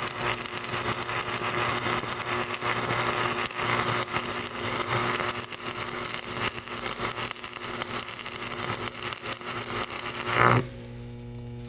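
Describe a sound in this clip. An arc welder crackles and sizzles loudly and steadily.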